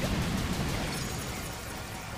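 A fiery explosion booms and roars in a video game.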